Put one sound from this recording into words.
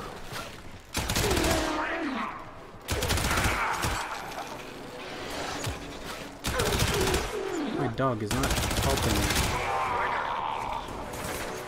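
Gunfire rings out in loud bursts.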